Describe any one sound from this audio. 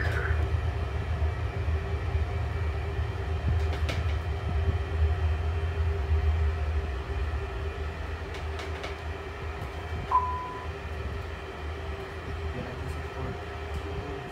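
Jet engines hum and rumble steadily as an airliner taxis, growing a little quieter.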